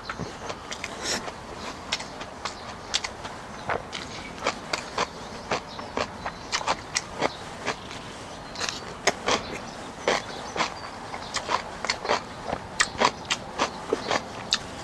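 A young man chews and slurps food loudly up close.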